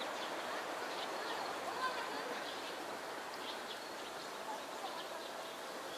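Water splashes as a grebe dives and surfaces.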